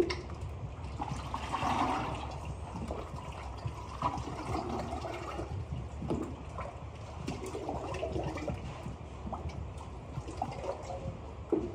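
Liquid slip pours and splashes into a mould.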